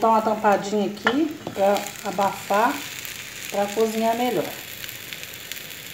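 A metal lid clanks against a pan.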